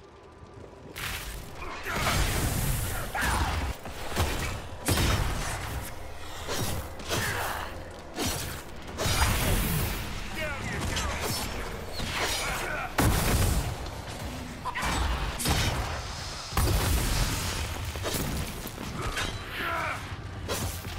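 Swords clash and strike in a fierce fight.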